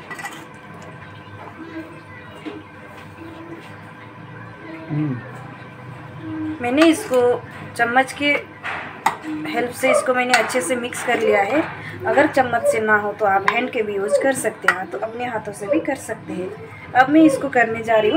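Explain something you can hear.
A spoon clinks and scrapes against a metal bowl.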